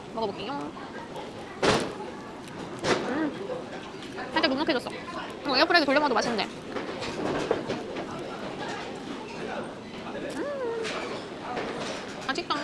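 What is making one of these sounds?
A young woman speaks with animation close to a clip-on microphone.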